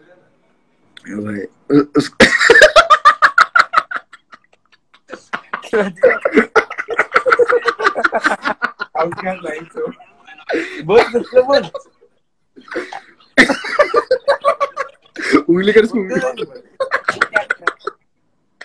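A young man laughs loudly through a phone microphone.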